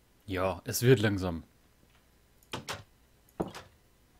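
A wooden door clacks open.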